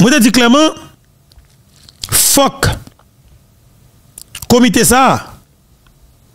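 A man speaks with animation close to a microphone, in short bursts.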